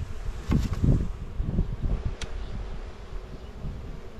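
A metal tool scrapes and pries at wooden hive frames.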